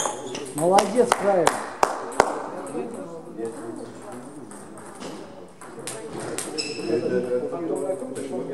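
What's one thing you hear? A young woman talks in an echoing hall.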